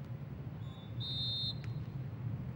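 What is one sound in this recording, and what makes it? A referee's whistle blows once, sharply.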